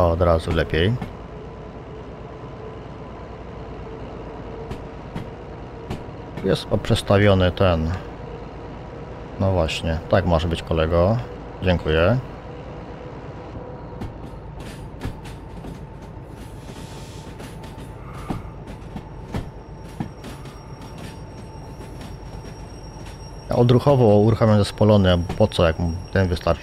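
A diesel locomotive engine idles with a low, steady rumble.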